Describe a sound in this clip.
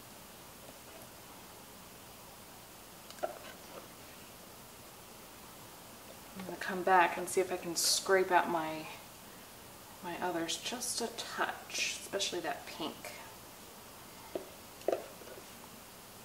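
A spatula scrapes against a plastic cup.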